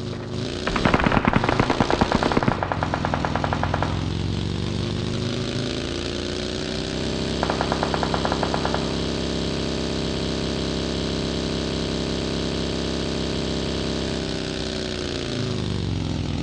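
A buggy engine drones steadily and shifts pitch as it revs.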